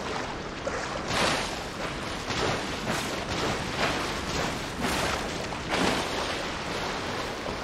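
Water splashes with each swimming stroke.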